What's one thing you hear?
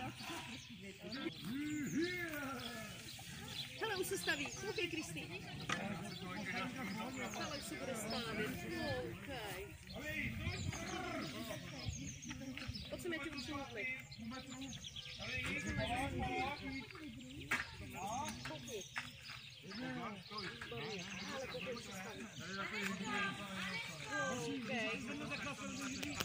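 A group of men talk and call out to one another outdoors.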